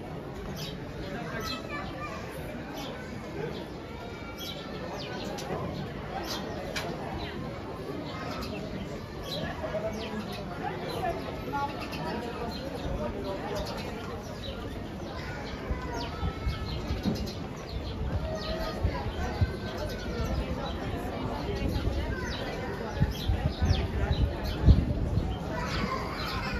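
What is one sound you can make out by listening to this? A crowd of people chatters at a distance outdoors.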